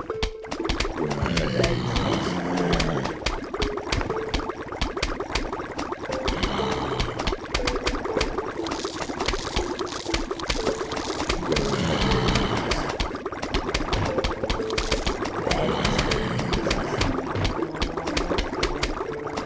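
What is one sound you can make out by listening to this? Game plants fire rapid, soft popping shots.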